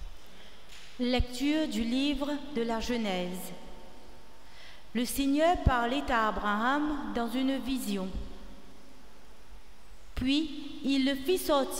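A woman reads aloud calmly through a microphone.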